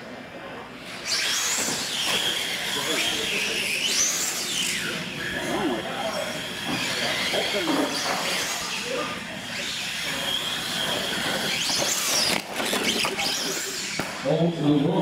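Small electric motors whine as toy cars race across a hard floor.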